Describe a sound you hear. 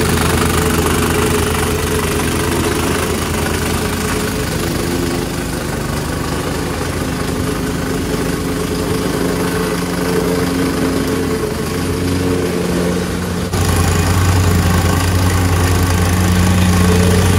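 A plate compactor thumps and rattles over gravel.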